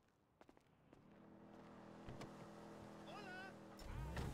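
A car engine idles.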